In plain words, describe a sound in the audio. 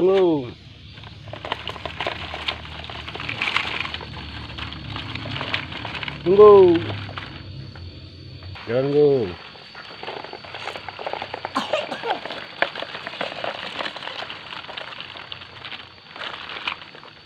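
Plastic toy truck wheels rattle and crunch over dirt and gravel.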